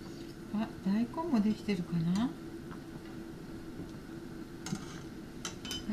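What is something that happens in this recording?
A metal ladle clinks against a pot.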